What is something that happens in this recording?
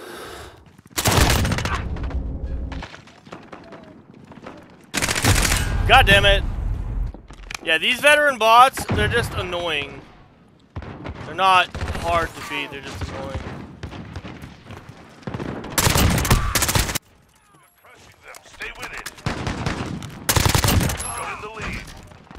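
Gunfire bursts loudly in short rapid volleys.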